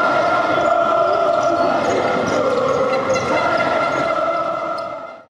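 A large crowd cheers loudly in an echoing hall.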